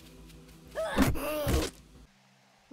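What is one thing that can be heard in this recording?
A heavy club thuds against a body.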